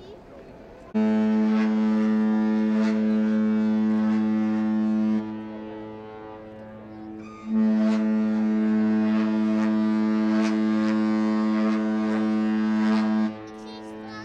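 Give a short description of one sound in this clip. A ship's horn sounds two long, loud, steady blasts.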